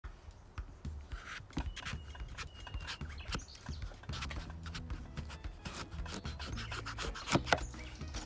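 A knife cuts into a firm squash with crunching, scraping sounds.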